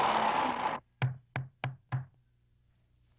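A hand knocks sharply on a door several times.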